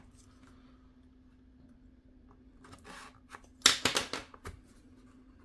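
A utility knife scratches and slices through plastic wrap.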